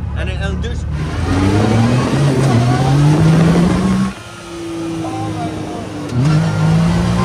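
A buggy engine roars and rises in pitch as it speeds up.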